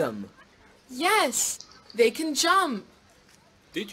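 A girl answers brightly.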